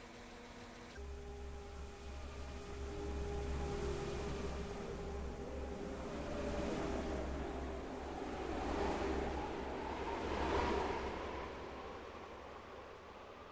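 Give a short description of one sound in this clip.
A train rolls past with a low rumble and hum, echoing in an enclosed space.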